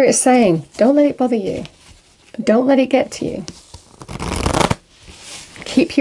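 A deck of cards is shuffled with a quick riffle.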